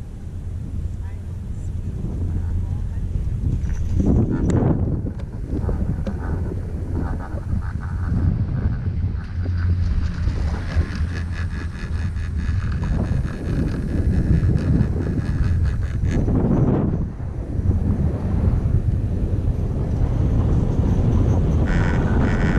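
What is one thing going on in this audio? Wind rushes steadily against the microphone outdoors.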